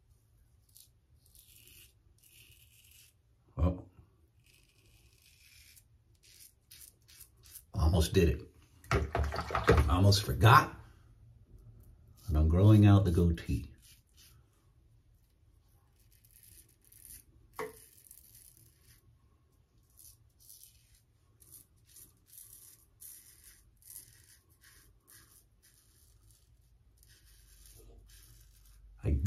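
A razor scrapes through stubble in short, quiet strokes.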